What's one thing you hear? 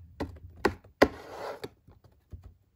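A cardboard box scrapes and rustles as hands turn it.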